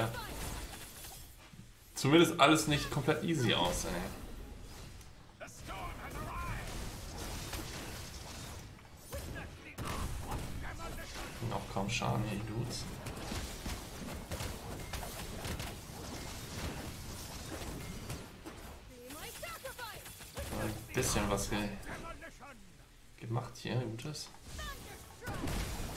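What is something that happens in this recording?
Game battle effects clash and crackle.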